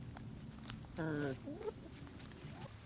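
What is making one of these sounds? A hen squawks loudly close by.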